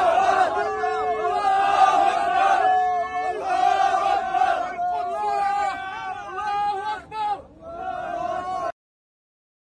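A crowd of young men sings and chants loudly together.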